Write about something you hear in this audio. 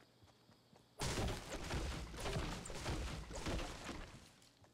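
A pickaxe strikes a tree trunk repeatedly.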